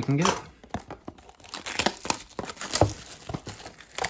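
Plastic wrap crinkles as hands tear it off.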